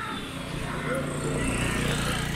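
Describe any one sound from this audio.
A motorbike engine approaches along the road.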